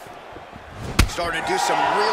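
A heavy punch lands with a thud.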